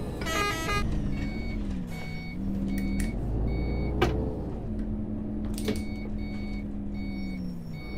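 A bus door warning beeps repeatedly.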